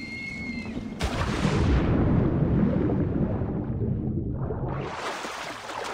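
Deep, muffled rumbling fills the ears underwater.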